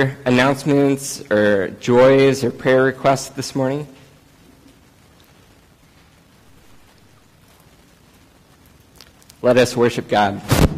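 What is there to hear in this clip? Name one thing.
A man speaks clearly, pausing between phrases.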